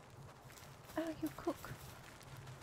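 A small fox-like creature gives short, high yelps.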